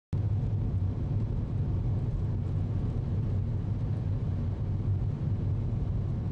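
A car engine hums low and steady inside the cabin while driving.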